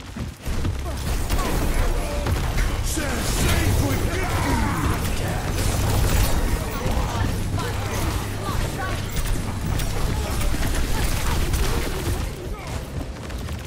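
Loud explosions and energy blasts boom in a video game fight.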